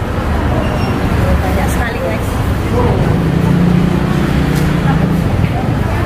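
A woman speaks softly through a face mask nearby.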